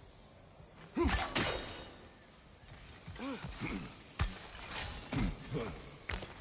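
A spear whooshes through the air.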